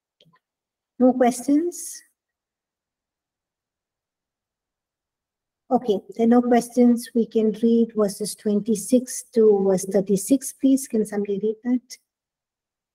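A middle-aged woman speaks calmly through a headset microphone over an online call.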